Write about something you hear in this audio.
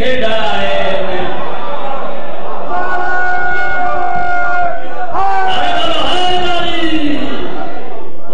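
A man sings loudly through a microphone with long held notes.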